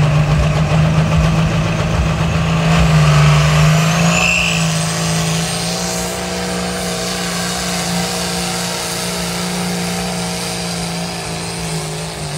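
A diesel pulling tractor roars at full throttle under load.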